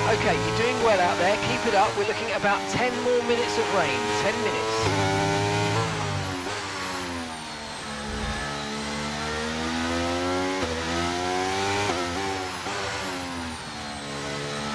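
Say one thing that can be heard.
A racing car engine screams, rising in pitch and dropping sharply with each gear change.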